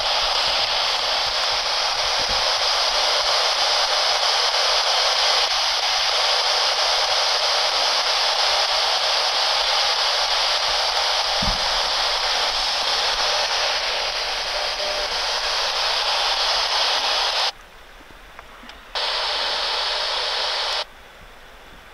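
A portable radio hisses with loud static, cutting out briefly near the end.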